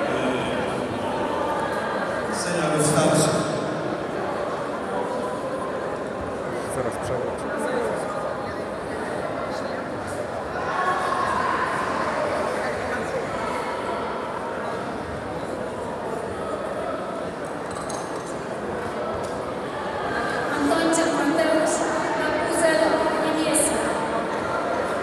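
A crowd murmurs and chatters throughout a large echoing hall.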